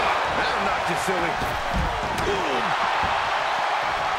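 Heavy thuds land on a wrestling ring mat.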